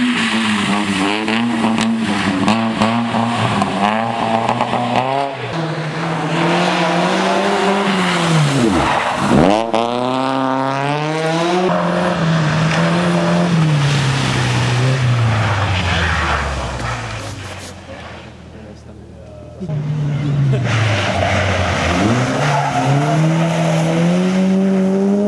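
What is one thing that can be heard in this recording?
Tyres hiss and scrape on slushy gravel.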